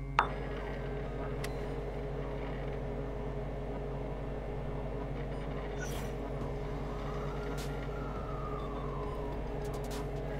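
Server machines hum steadily in the background.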